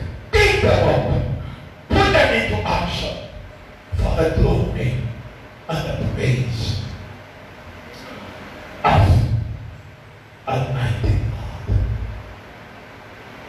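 An elderly man preaches forcefully through a microphone in short, loud bursts.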